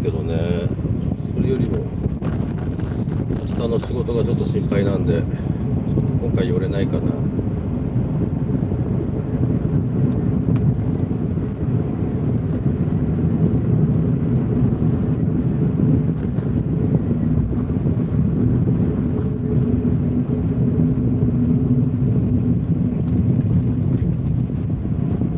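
A car rumbles steadily along a road, heard from inside.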